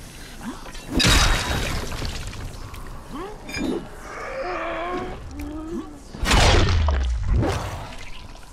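An axe strikes flesh with a heavy thud.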